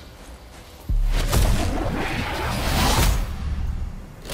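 Ice shatters with a loud crash.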